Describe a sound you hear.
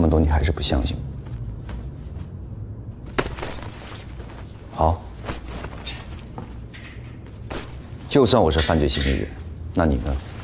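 Clothing rustles as a man pulls on a heavy coat.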